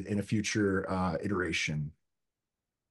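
A man speaks calmly into a microphone, heard as in an online call.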